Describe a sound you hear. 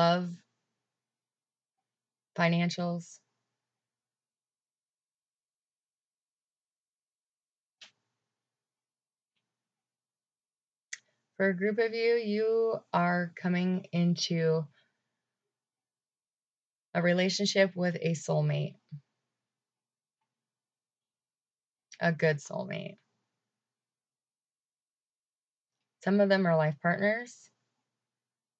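A young woman speaks calmly close to a microphone, pausing now and then.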